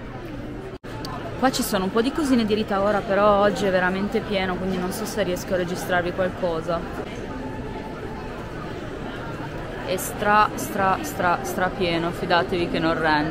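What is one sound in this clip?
A young woman talks calmly, close to the microphone.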